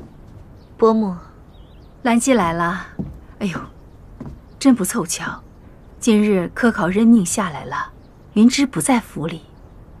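A young woman answers calmly in a soft voice.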